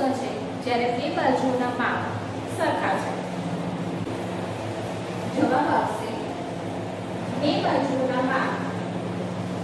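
A woman speaks calmly and clearly, close by, with pauses.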